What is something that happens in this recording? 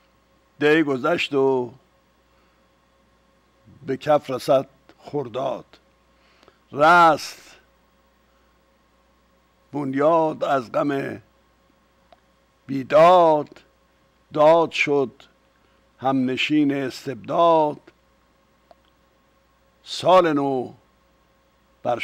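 An elderly man speaks calmly into a microphone in short phrases with pauses.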